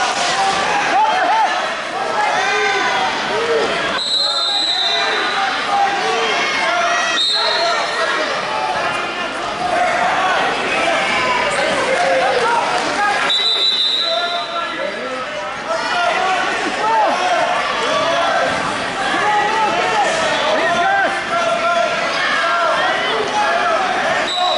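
A crowd of spectators talks and shouts throughout, echoing in a large hall.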